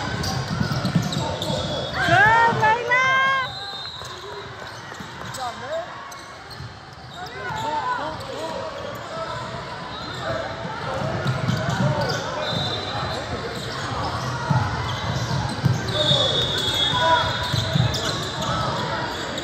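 A basketball bounces with dull thumps on a hardwood floor.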